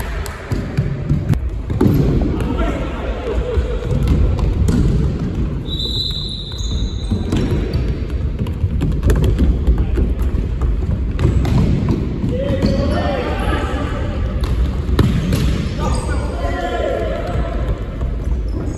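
A ball is kicked with sharp thumps that echo around a large hall.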